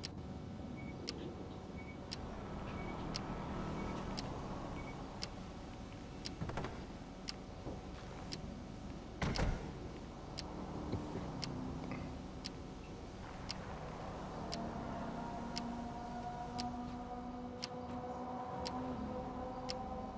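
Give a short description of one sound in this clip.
A countdown timer ticks steadily once every second.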